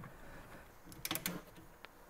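A ratchet wrench clicks rapidly.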